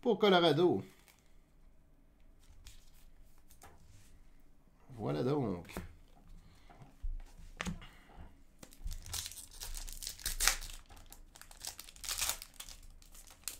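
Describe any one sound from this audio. Cards and plastic wrappers rustle and crinkle in handling.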